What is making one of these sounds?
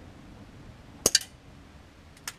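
A rifle fires a single sharp shot.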